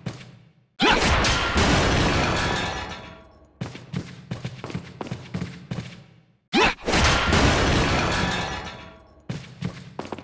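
A heavy suit of armour swings and crashes with a loud echoing boom.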